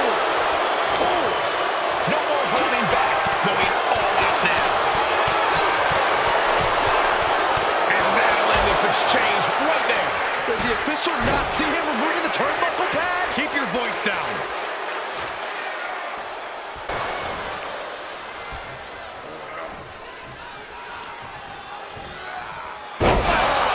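A large arena crowd roars and cheers.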